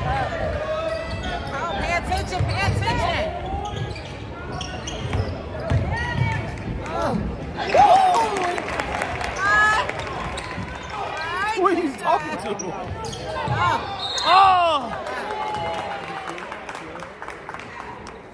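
A crowd cheers and chatters in an echoing gym.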